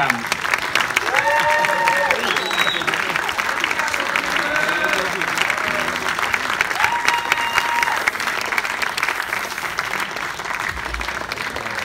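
A rock band plays live in a large echoing hall.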